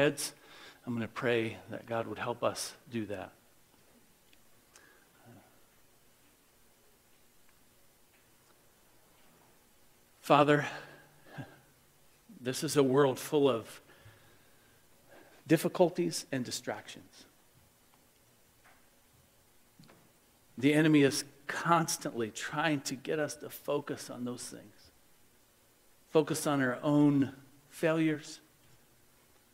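A middle-aged man speaks slowly and earnestly into a microphone, with long pauses.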